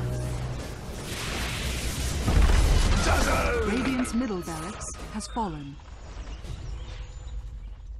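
Video game battle effects crackle and boom as spells are cast.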